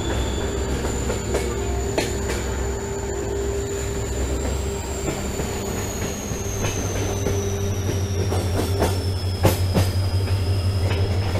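A diesel locomotive engine rumbles steadily close by.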